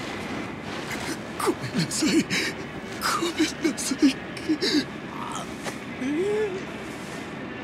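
A young man pleads in a shaky, sobbing voice.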